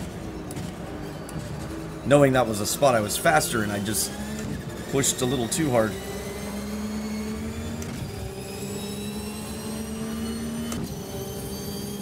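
A racing car engine hums steadily, shifting pitch as it accelerates.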